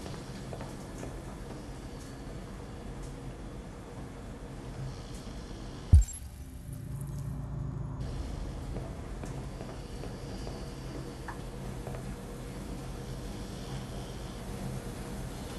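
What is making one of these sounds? Washing machines hum steadily in the background.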